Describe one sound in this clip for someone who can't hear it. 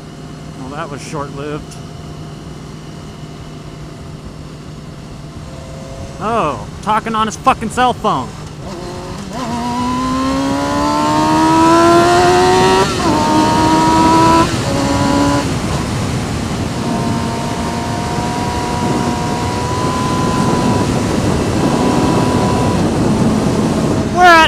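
A motorcycle engine hums and revs up as the bike accelerates through its gears.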